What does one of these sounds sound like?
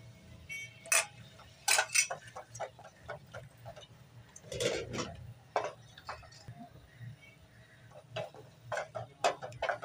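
A wooden spoon stirs meat in liquid in a metal pot, clinking against the sides.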